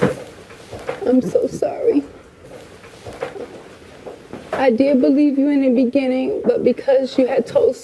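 A woman sobs and speaks tearfully up close.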